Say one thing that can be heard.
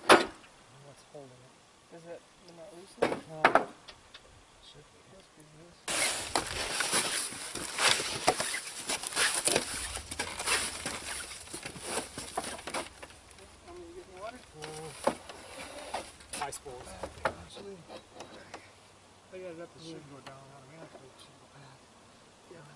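Men talk casually nearby, outdoors.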